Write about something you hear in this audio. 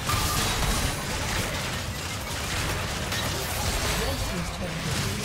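Magic spells crackle and burst in a fierce fight.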